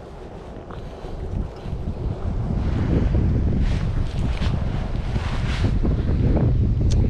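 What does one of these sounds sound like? Wind blows roughly across the microphone outdoors.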